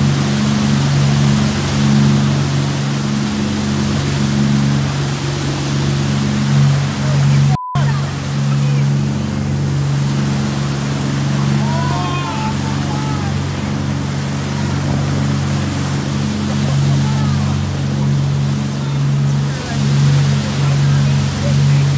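A boat's engine drones steadily.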